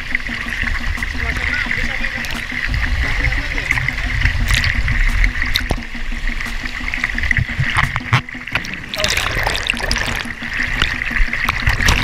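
Air bubbles gurgle and rush underwater from a diver's breathing gear.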